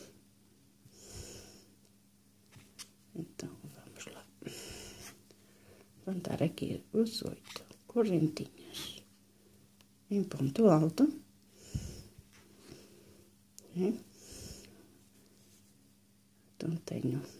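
A crochet hook softly taps and rustles against yarn.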